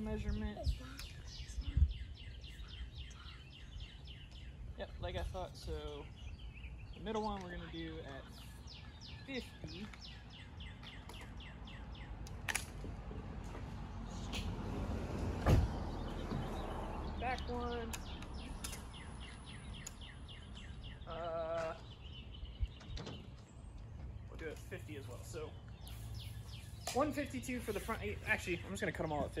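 A man talks calmly close by, outdoors.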